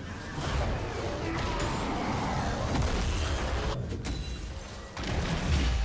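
Magic blasts whoosh and crackle in a fantasy battle.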